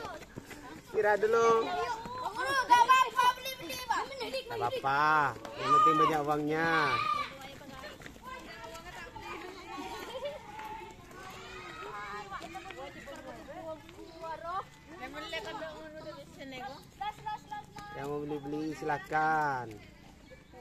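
Women talk and call out with animation nearby, outdoors.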